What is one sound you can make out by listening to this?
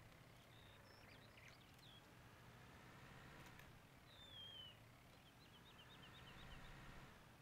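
A tractor engine rumbles steadily as it drives slowly.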